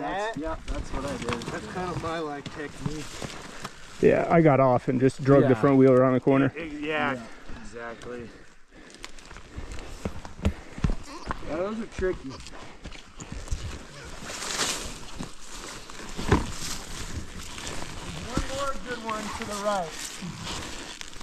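A man talks casually close to the microphone.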